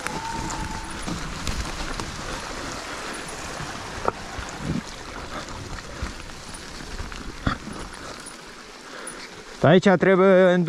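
Bicycle tyres roll and rattle over a dirt forest trail.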